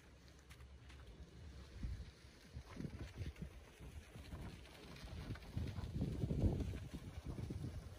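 A wooden ramp drags and scrapes across grass.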